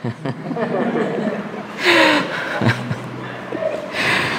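A man laughs softly.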